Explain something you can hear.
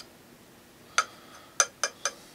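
A small metal tin clicks and taps a few times.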